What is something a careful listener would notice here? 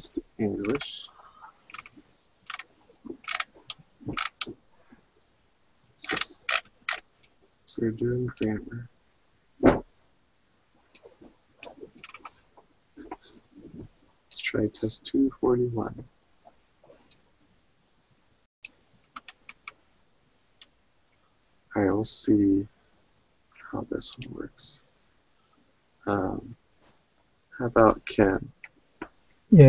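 A man speaks calmly through a webcam microphone, in short bursts with pauses.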